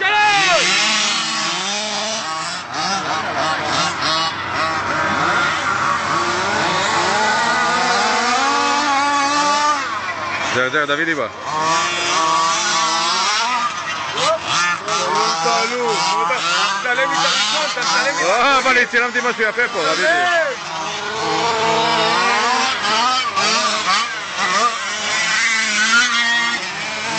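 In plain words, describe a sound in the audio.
Small model car motors whine at high pitch, rising and falling as the cars race.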